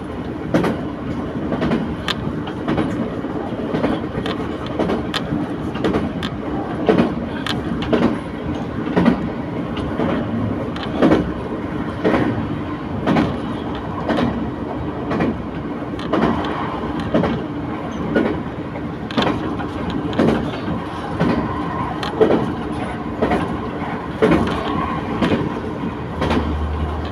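A train rumbles along, heard from inside.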